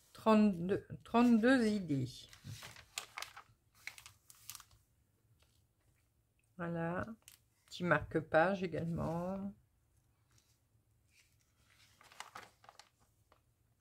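Paper pages rustle and flip as a magazine page is turned.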